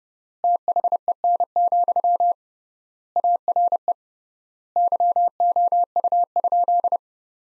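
Morse code beeps out in quick short and long tones, with pauses between groups.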